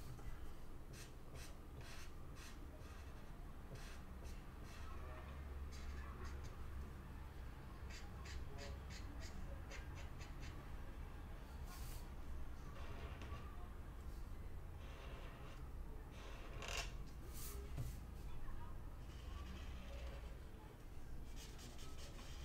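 A felt-tip marker squeaks and scratches on paper.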